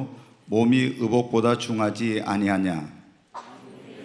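A middle-aged man speaks steadily into a microphone, reading out.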